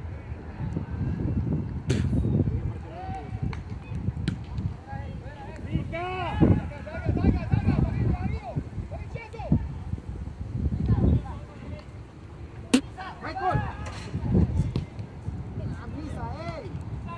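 Men shout to each other at a distance outdoors.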